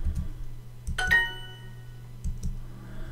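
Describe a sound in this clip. A short rising electronic chime sounds for a correct answer.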